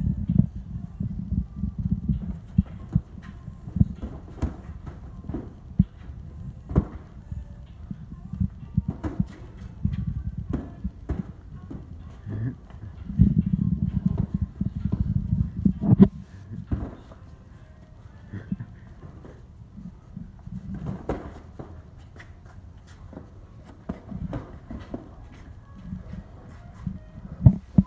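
Boxing gloves thud against a body in a sparring exchange, echoing off concrete.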